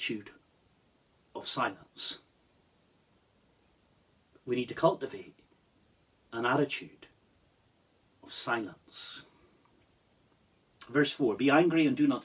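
A middle-aged man reads aloud slowly and calmly, close by, with pauses between phrases.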